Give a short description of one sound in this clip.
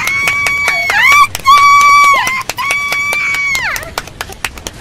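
A young woman shrieks in long, high, drawn-out wails through a microphone.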